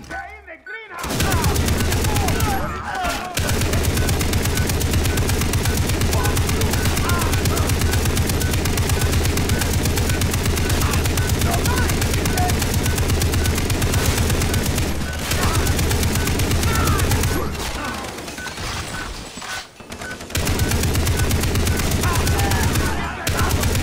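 A mounted machine gun fires rapid, loud bursts.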